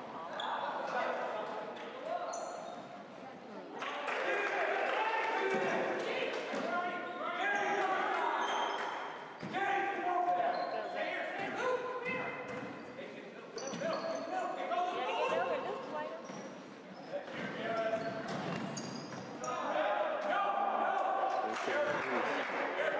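Spectators and players shout and call out across an echoing gym.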